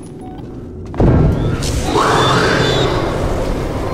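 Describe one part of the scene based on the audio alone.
A loud blast bursts and rumbles.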